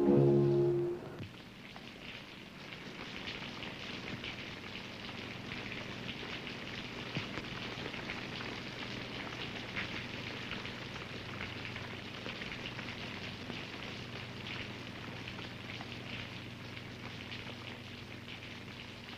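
Rain patters steadily against a window.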